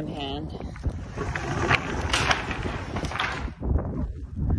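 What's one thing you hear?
A roll-up door rattles as it slides open.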